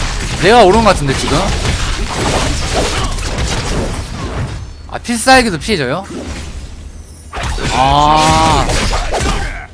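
Game combat effects clash and whoosh.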